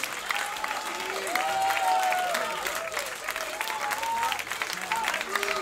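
Audience members whoop and cheer.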